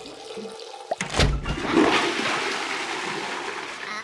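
A toilet flushes with a gushing rush of water.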